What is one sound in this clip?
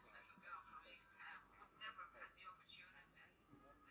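A man speaks at a news briefing, heard through a television's speaker.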